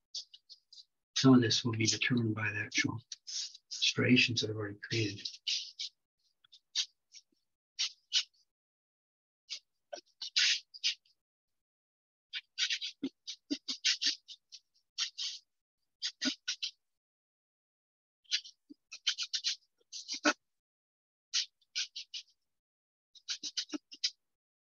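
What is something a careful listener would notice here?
A paintbrush scrapes and dabs on a canvas in short strokes.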